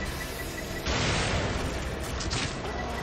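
Fire roars in a burst of flame.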